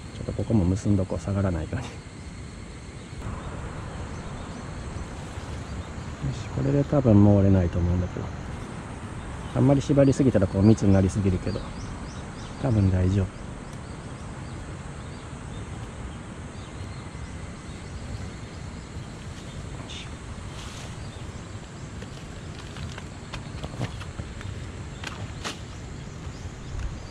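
Leaves rustle as plants are pulled and handled.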